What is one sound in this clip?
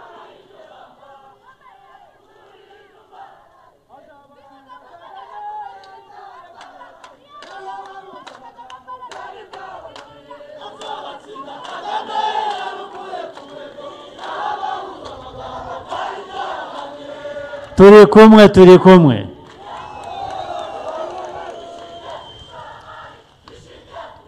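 A man speaks with energy through a loudspeaker to a crowd outdoors.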